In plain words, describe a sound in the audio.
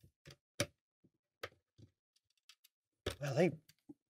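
Metal latches click open on a wooden case.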